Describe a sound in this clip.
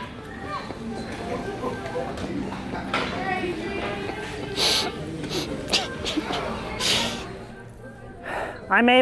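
People chatter quietly in the background.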